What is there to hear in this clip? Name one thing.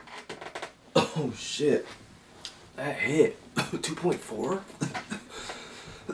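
A young man speaks emotionally up close, his voice breaking.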